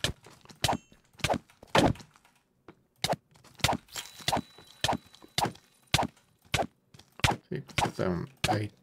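A sword strikes a monster again and again with quick sharp thuds.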